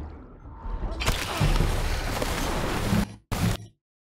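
Water churns and splashes during a struggle.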